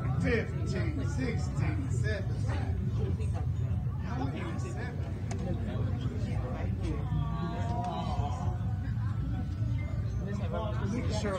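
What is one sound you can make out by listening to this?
A crowd of men and women talks and chatters nearby in a room.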